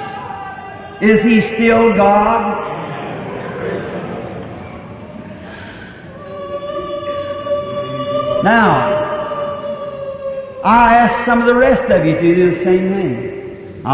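A man preaches with animation into a microphone.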